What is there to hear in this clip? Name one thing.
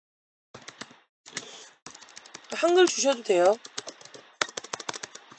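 Keys clatter on a keyboard in quick taps.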